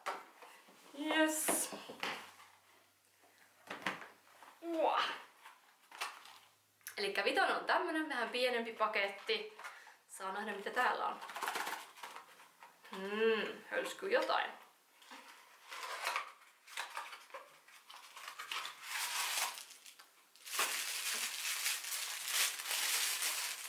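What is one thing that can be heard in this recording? Paper and cardboard rustle as a box is unwrapped.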